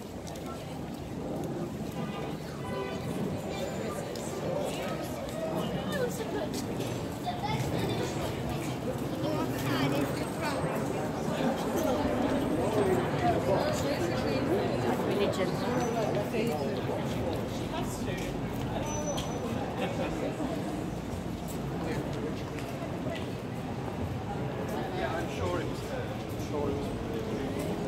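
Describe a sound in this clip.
Footsteps walk on paving stones.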